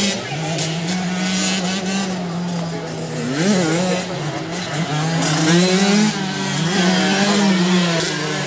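A small dirt bike engine buzzes and revs nearby.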